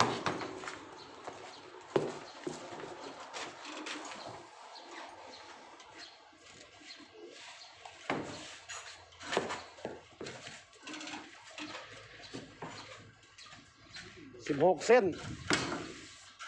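Heavy tyres thump and knock against a metal rack.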